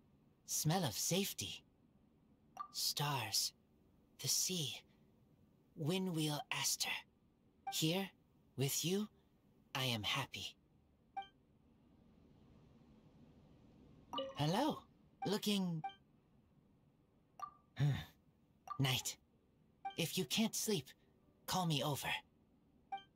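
A young man speaks in short, halting phrases, recorded close.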